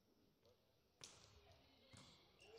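A volleyball thumps in a large echoing hall.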